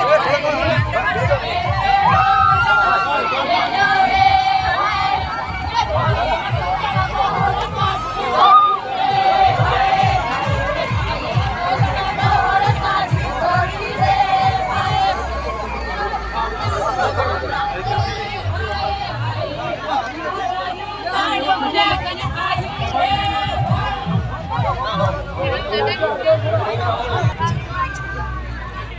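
A crowd of men and women sings and shouts loudly close by.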